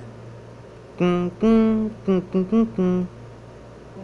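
A loud musical jingle plays through small laptop speakers.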